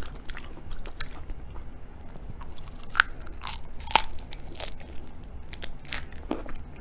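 A young woman bites and crunches something crisp close to a microphone.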